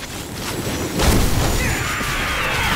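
A beam of energy blasts with a loud, sizzling roar.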